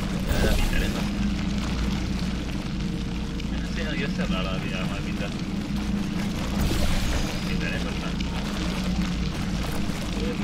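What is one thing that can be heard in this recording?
Thick liquid gushes and splatters steadily onto a hard floor.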